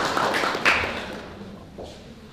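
An audience applauds in a room.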